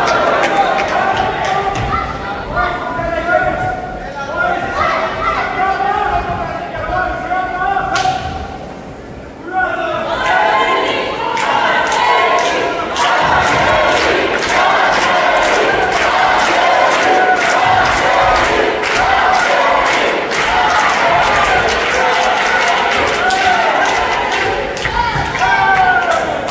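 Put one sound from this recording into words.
A crowd shouts and cheers in an echoing hall.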